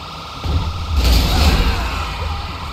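A car crashes into a vehicle with a loud thud.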